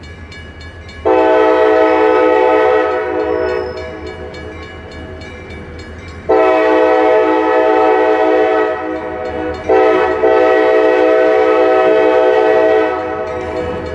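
A train horn blows long, loud blasts.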